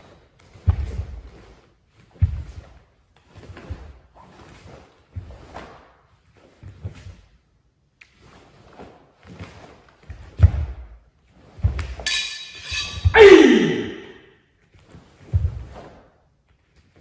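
A man's bare feet stamp on a hall floor.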